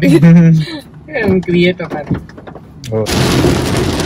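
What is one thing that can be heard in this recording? A young woman laughs and talks close by.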